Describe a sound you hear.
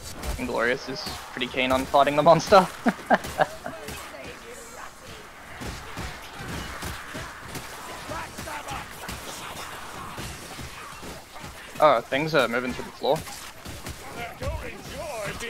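Blades hack and slash into bodies.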